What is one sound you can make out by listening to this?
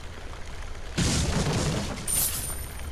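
A wooden barrel smashes apart with a loud crack.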